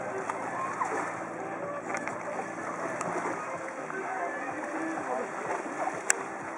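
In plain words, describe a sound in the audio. Calm sea water laps gently.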